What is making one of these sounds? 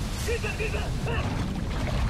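Boots splash through shallow water.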